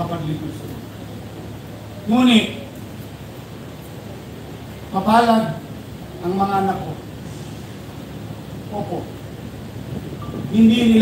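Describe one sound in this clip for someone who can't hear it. A man speaks slowly and deliberately through a microphone and loudspeakers outdoors, with long pauses.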